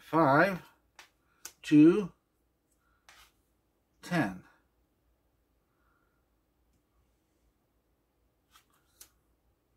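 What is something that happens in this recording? Cards are laid down with light taps on a wooden table.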